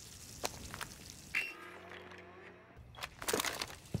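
A phone gadget beeps and crackles with static.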